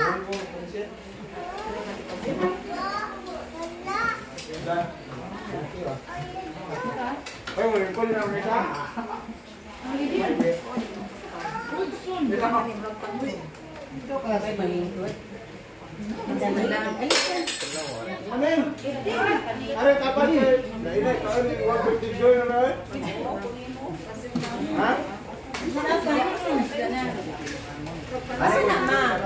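Serving spoons clink against dishes and trays.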